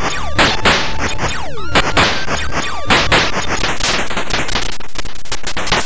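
Crackling electronic explosions burst and rumble.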